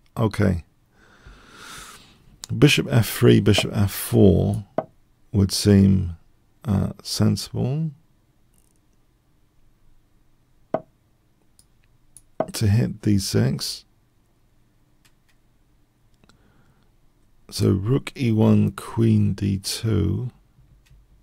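A middle-aged man talks in bursts, close to a microphone, with pauses between.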